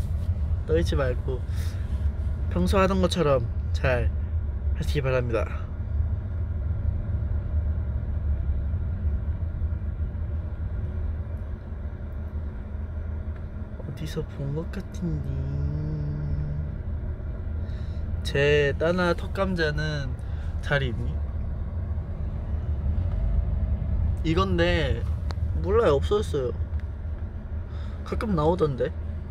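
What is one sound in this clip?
A car hums low and steady while driving.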